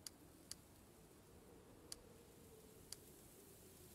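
Short, sharp clicks sound a few times as a menu is browsed.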